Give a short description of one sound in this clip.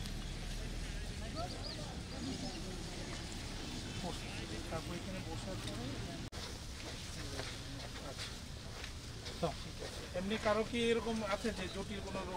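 Footsteps tread softly on grass.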